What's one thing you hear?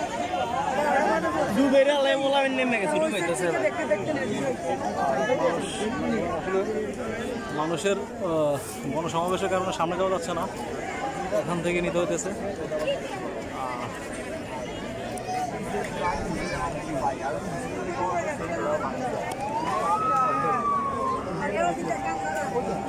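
A large crowd of men and women talks and shouts all at once close by, outdoors.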